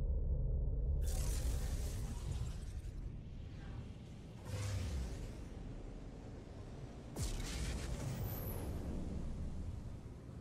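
A spaceship blasts forward with a loud rushing whoosh.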